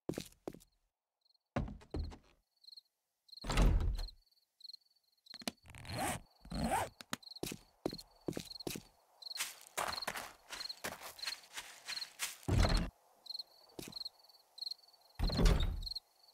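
Footsteps patter quickly along at a run.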